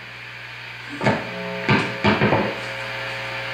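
An electric guitar is strummed loudly through an amplifier in a few short bursts.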